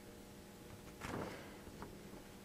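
A sheet of paper rustles as a hand moves it.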